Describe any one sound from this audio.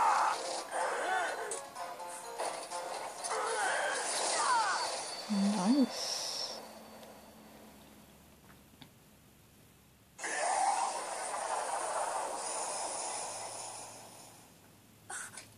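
Game sound effects play from a handheld game console's small speakers.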